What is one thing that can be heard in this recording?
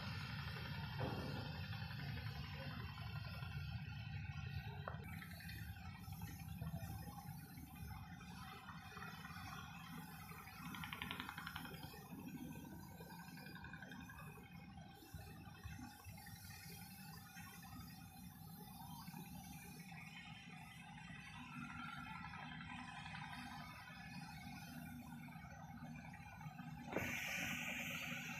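A boat engine drones steadily and close by.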